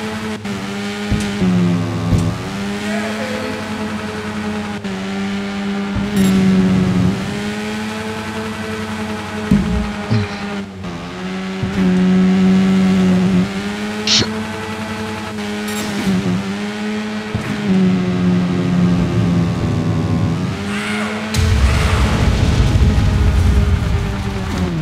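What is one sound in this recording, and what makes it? A motorbike engine revs up and down, rising and falling in pitch.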